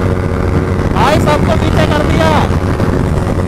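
Another motorcycle roars past close by.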